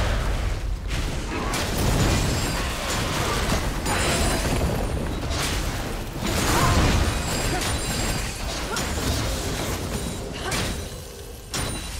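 Game characters clash in a fight, with spell effects bursting and crackling.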